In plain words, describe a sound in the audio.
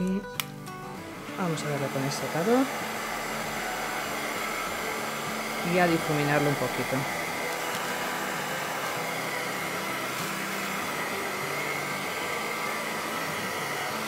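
A heat gun blows with a steady, loud whoosh.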